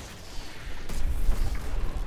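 A crackling energy blast bursts and hums.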